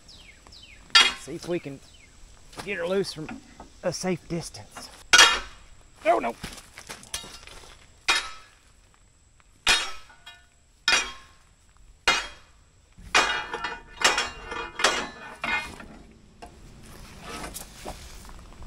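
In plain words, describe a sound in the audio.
A metal bar knocks and scrapes against metal outdoors.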